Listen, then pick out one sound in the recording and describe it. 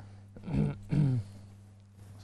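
A man speaks a few quiet words close to a microphone.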